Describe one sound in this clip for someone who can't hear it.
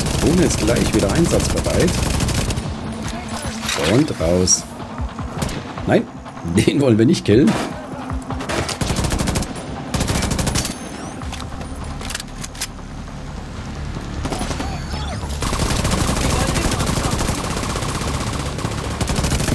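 Rifle fire cracks in rapid bursts.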